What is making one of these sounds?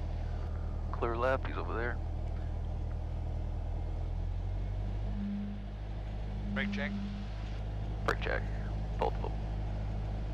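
A man speaks briefly through a headset radio in short bursts.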